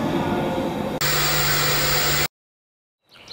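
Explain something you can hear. Static hisses loudly.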